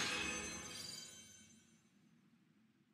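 A bright, shimmering chime rings out and quickly fades.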